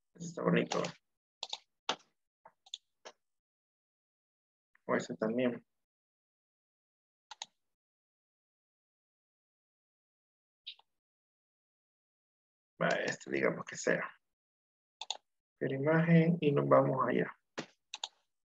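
A man speaks calmly over an online call, in short bursts with pauses.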